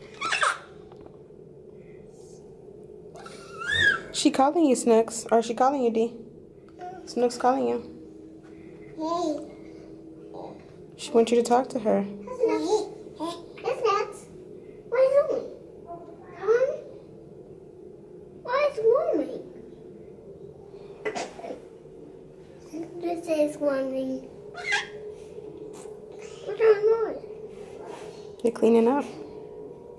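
A young child talks and babbles close by.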